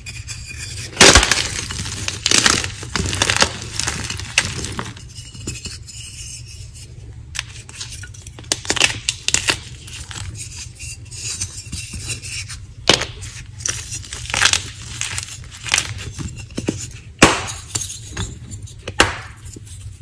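Lumps of chalk crack and snap apart between hands, close up.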